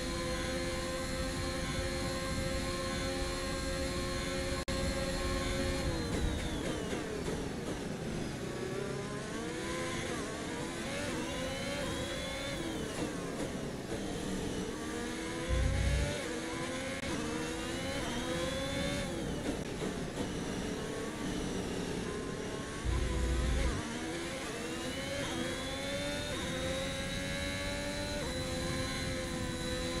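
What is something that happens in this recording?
A racing car engine screams at high revs, rising and falling as it shifts gears.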